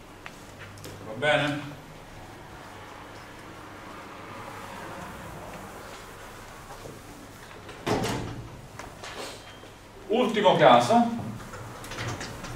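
A young man speaks in short bursts.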